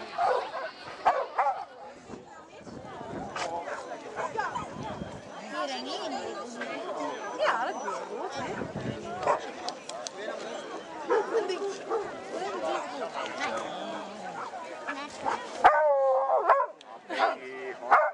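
A woman talks encouragingly to a dog, close by outdoors.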